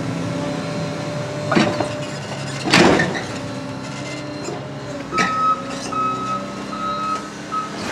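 A hydraulic hammer pounds against rock with loud knocks.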